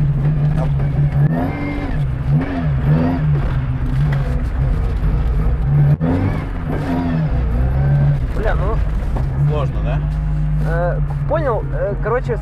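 A car engine drones steadily from inside the cabin.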